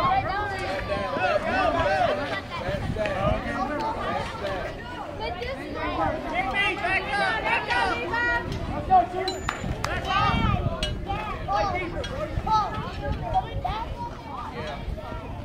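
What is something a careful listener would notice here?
A crowd of people chatter and shout outdoors nearby.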